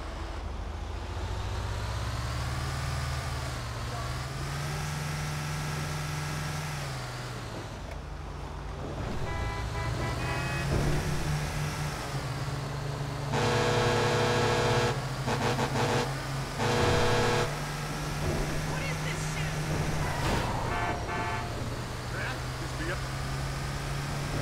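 A bus engine drones steadily, rising and falling in pitch.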